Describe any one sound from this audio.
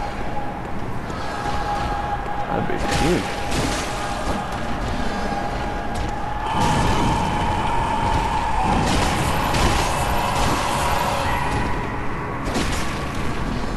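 A monstrous beast snarls and roars.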